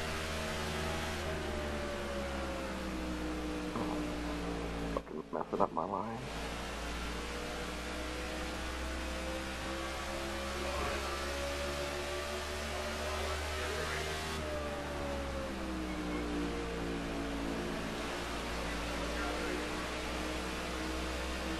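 A race car engine roars steadily, rising and falling in pitch.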